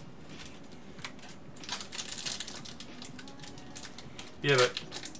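A foil card pack crinkles and tears open in hands.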